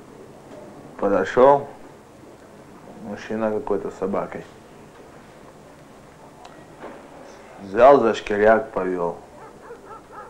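A young man speaks calmly and close by, in short bursts.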